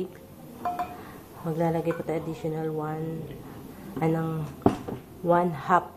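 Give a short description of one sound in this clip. Water pours from a jug through a metal strainer into a pot.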